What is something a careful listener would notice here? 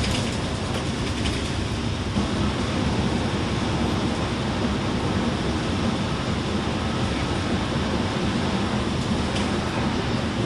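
Tyres roar steadily on a motorway.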